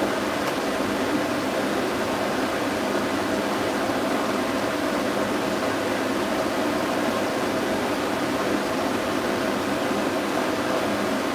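A pet blow dryer roars steadily and loudly close by.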